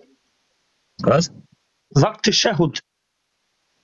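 A man speaks in short bursts, close to a phone microphone.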